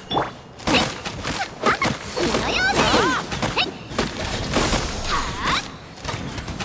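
Sword slashes whoosh and clang in quick succession.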